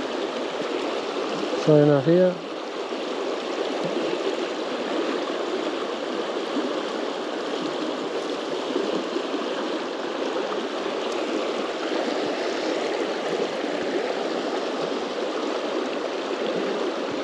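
Shallow river water rushes and gurgles steadily over stones.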